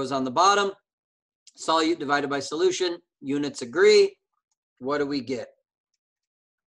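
A man speaks calmly into a close microphone, explaining in short phrases.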